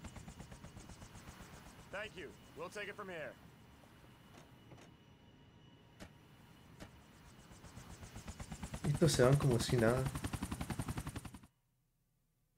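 Helicopter rotor blades thump rapidly and steadily.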